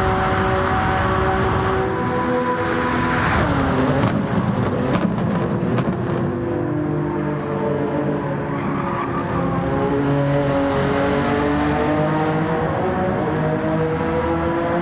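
A race car engine roars at high speed and whooshes past.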